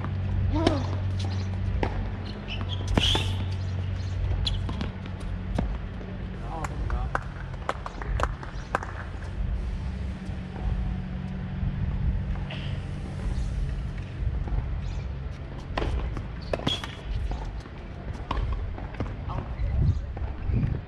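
Tennis balls are struck with rackets in a steady rally.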